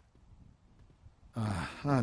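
Footsteps walk softly on a hard floor.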